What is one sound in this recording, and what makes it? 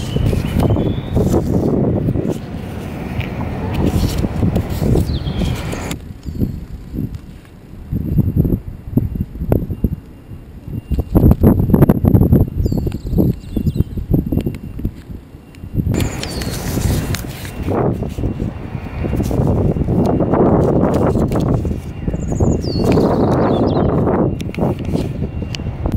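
Wind blows across a microphone outdoors.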